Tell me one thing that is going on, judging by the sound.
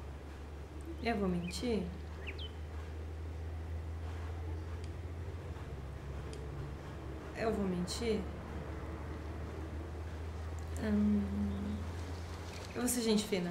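A young woman speaks softly and briefly, close to a microphone.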